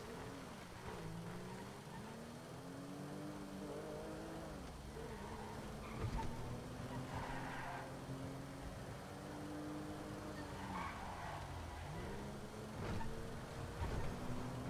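A car engine hums steadily as it drives along the road.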